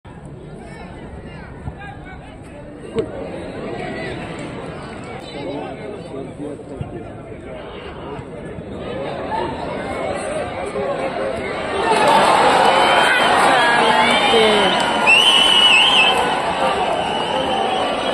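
A crowd of spectators cheers and shouts outdoors, growing loud.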